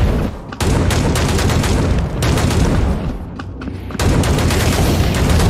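Fiery explosions burst nearby.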